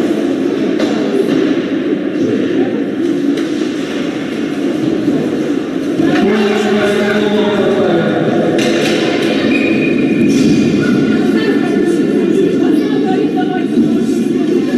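A crowd of spectators chatters in a large echoing rink.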